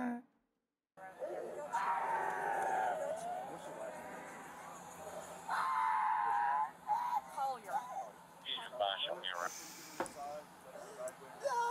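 An elderly woman shouts and protests nearby.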